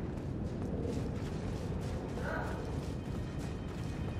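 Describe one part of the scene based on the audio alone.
Footsteps run across stone paving.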